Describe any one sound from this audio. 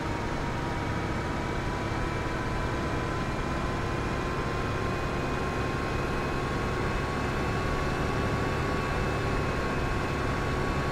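A tractor engine hums steadily and slowly rises in pitch.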